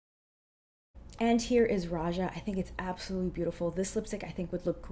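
A young woman talks with animation, close to the microphone.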